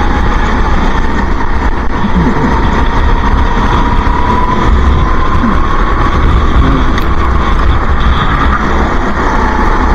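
Other kart engines buzz nearby.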